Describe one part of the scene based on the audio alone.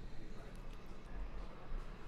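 A man chews food close to a microphone.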